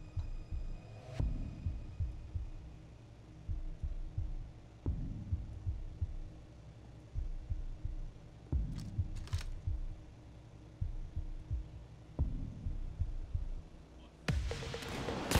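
Footsteps thud quickly on stairs and hard floors.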